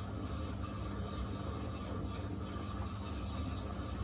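Laundry tumbles and swishes inside a washing machine drum.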